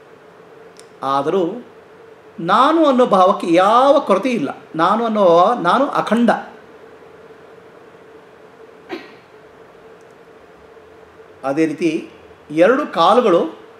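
A middle-aged man sings close to a microphone in short phrases.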